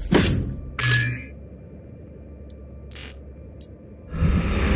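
Short menu clicks tick.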